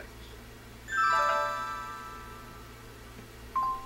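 A quiz game plays a bright, ringing chime that fades.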